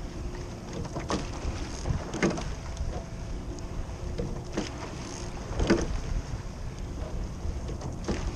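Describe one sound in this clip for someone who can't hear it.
Oarlocks clunk with each stroke.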